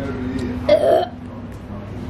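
A young boy talks nearby.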